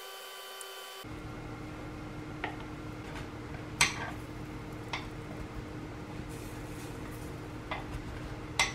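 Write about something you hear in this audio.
Batter sizzles as it fries in a hot pan.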